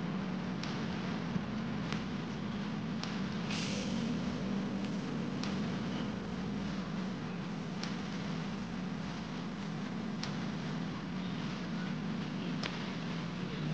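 Footballs are kicked with sharp thuds in the distance.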